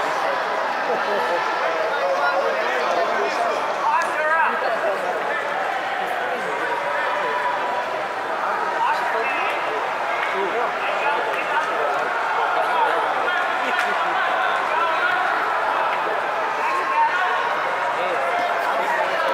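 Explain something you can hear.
A crowd murmurs and chatters throughout a large echoing hall.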